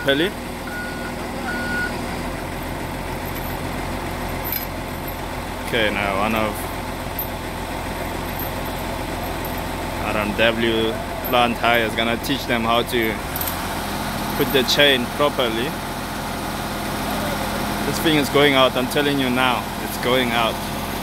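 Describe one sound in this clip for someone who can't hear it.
A heavy diesel engine idles steadily nearby.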